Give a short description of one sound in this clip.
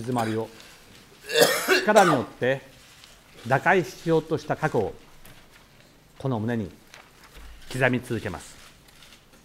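A middle-aged man speaks slowly and formally into a microphone, with long pauses.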